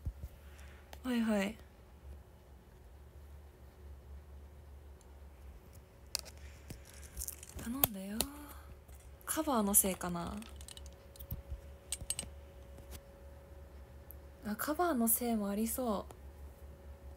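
A young woman speaks calmly and softly into a close microphone, in short bursts with pauses.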